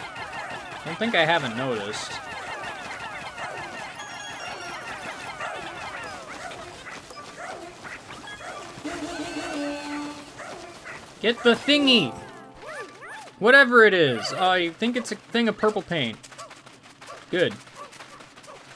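Small cartoon creatures chirp and squeak in high, bouncy voices.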